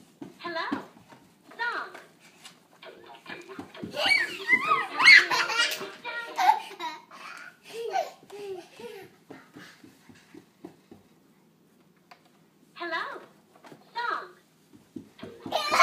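Young children shout and babble excitedly nearby.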